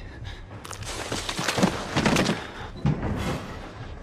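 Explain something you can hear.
A body crashes heavily against a wooden floor.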